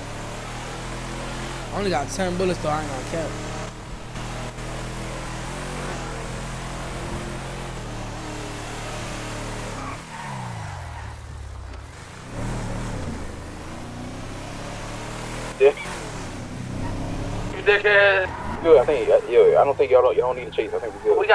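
A car engine hums steadily and rises and falls in pitch.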